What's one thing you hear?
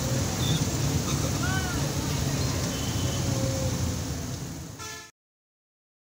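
Traffic noise rushes past outside.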